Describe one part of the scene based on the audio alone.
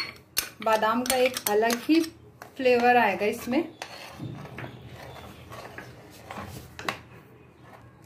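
A spoon stirs and scrapes a thick, bubbling mixture in a metal pot.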